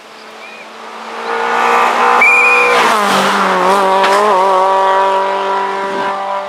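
A rally car engine roars loudly as the car speeds past, revving high and changing gear.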